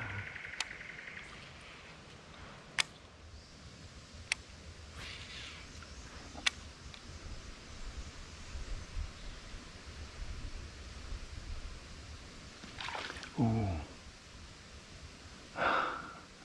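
Water laps gently against a kayak.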